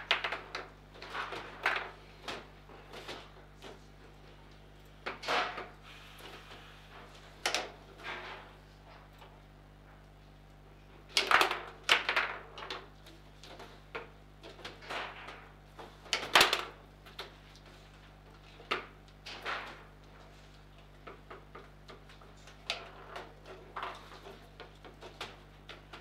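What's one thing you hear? Metal foosball rods rattle and spin in their bearings.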